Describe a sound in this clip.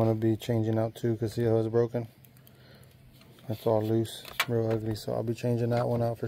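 A metal cable clamp clicks and scrapes against a battery terminal.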